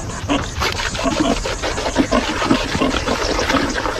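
Water splashes as it is poured from a bucket.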